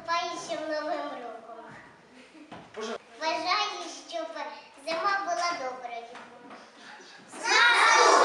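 A young girl recites a poem in a lively voice, in a room with some echo.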